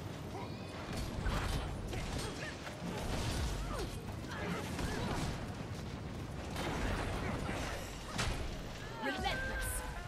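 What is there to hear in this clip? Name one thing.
Magic blasts and sword strikes crackle and clash in a fight.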